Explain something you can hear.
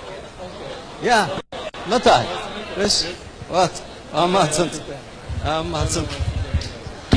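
A man speaks into microphones with animation.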